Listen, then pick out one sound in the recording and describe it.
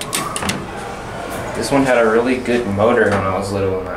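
An elevator door slides shut.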